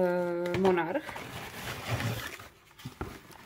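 Shredded paper rustles and crinkles as a hand digs through it.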